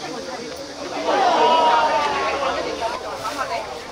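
Young men cheer loudly after a shot on goal.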